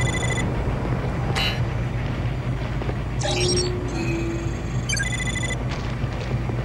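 Short electronic chimes ring out.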